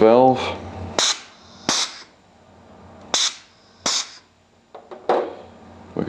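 A pneumatic spring plunger valve hisses with short bursts of compressed air.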